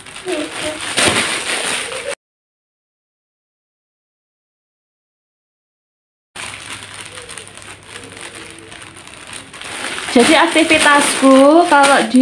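Plastic packaging rustles and crinkles as it is handled.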